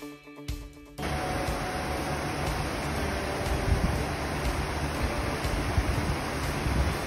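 A waterfall rushes and splashes steadily over rocks.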